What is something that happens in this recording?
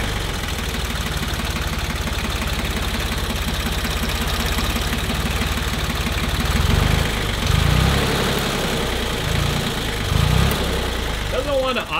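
A diesel tractor engine idles with a steady, rapid chugging.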